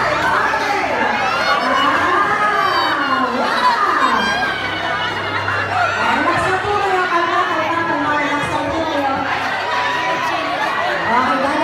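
A crowd of children and adults chatters and calls out loudly outdoors.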